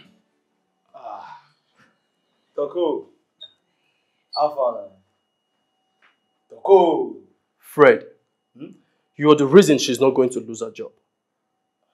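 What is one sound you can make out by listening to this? A man speaks calmly and close by.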